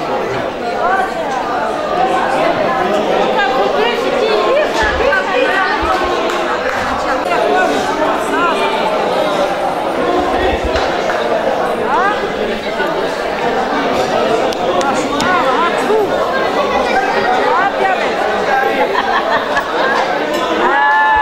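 A crowd of men and women chatter and talk over one another.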